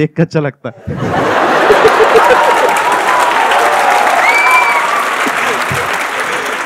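A crowd claps and cheers.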